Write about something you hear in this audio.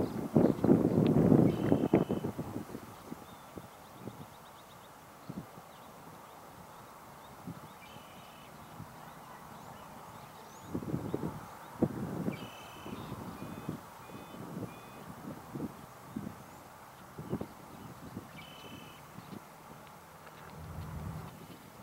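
Hot water splashes and gurgles as a geyser spurts in bursts.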